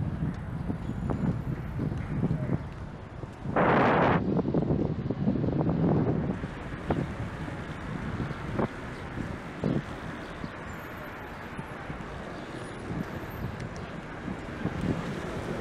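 Car tyres roll on the road.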